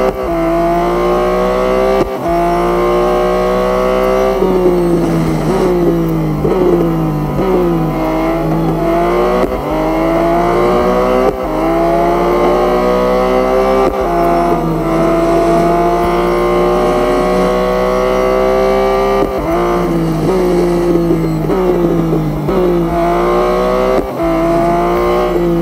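A race car engine roars, rising in pitch as it speeds up and dropping as it slows for bends.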